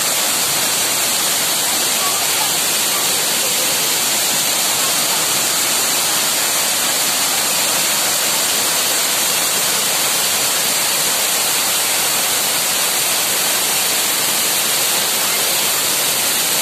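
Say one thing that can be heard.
A waterfall roars and splashes steadily close by.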